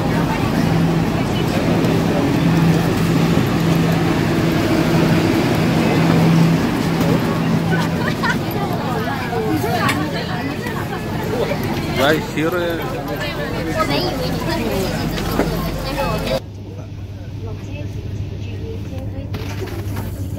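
A train rumbles and hums steadily.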